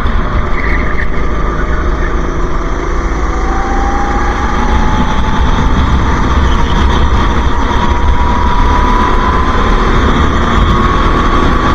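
A small kart engine buzzes loudly close by and rises steadily in pitch.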